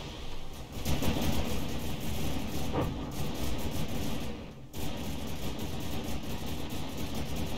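Shells explode with low booms.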